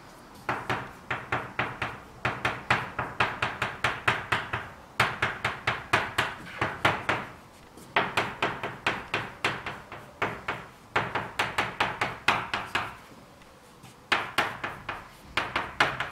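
Chalk taps and scrapes rapidly on a blackboard in short bursts.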